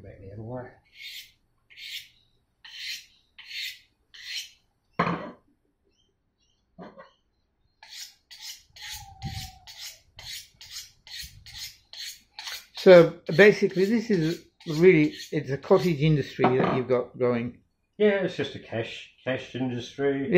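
A knife blade scrapes rhythmically along a honing steel.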